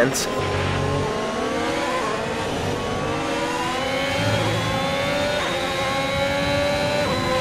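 A racing car engine revs high and climbs in pitch as it shifts up through the gears.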